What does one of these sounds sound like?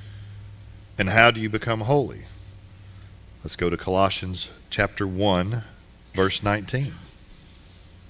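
A man speaks through a microphone in a large room, pausing between phrases.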